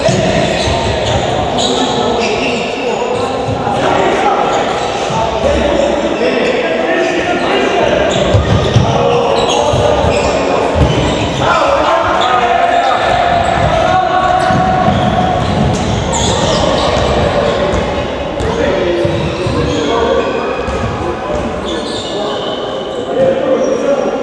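Young men shout to each other across the hall.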